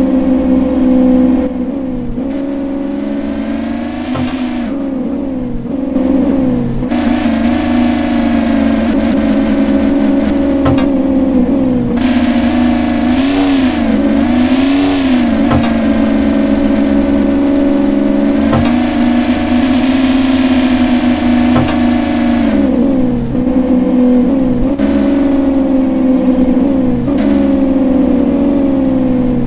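A sports car engine drones steadily, its pitch rising and falling as it speeds up and slows down.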